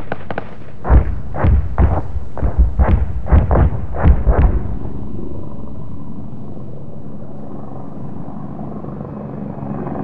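Attack helicopters fly overhead with thudding rotors.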